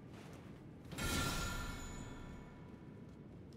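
A bright, shimmering chime rings out and slowly fades.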